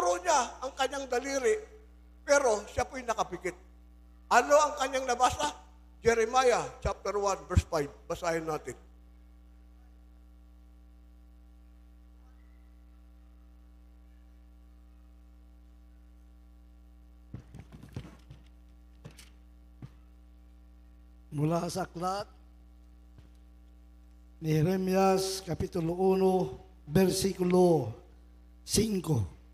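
A man preaches with animation into a microphone, heard through loudspeakers, with long pauses.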